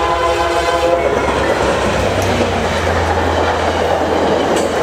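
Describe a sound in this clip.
Train wheels clatter and roar on the rails.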